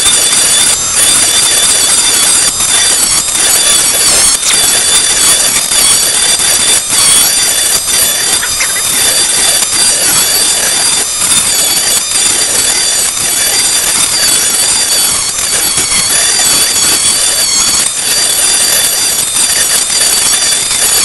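A rotary tool grinds and scrapes against a plastic disc.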